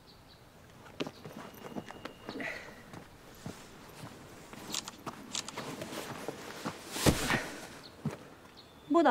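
Footsteps crunch on a dry path.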